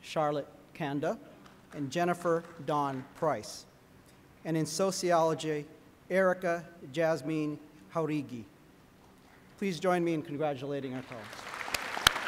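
A man speaks calmly over a loudspeaker in a large echoing hall.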